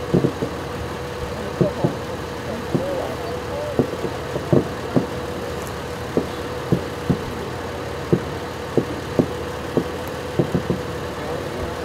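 Fireworks boom and pop in the distance, echoing outdoors.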